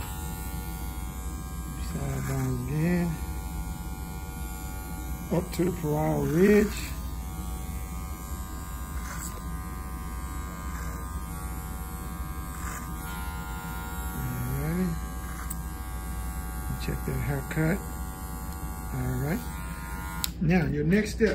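Electric hair clippers hum steadily.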